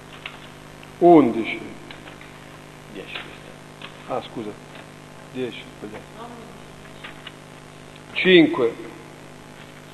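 A man speaks in short bursts in an echoing room.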